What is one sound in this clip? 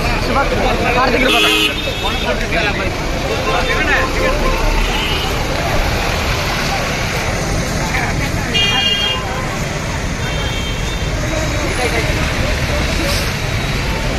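A crowd of men talk and shout excitedly close by.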